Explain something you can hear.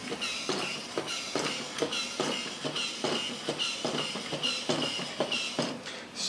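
A toy robot gives off a rapid repeating electronic tone.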